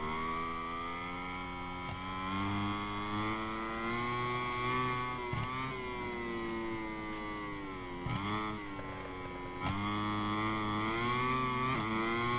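A motorcycle engine roars at high revs, dropping in pitch with each gear change.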